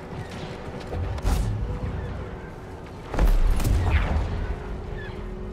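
A heavy machine rumbles and thuds.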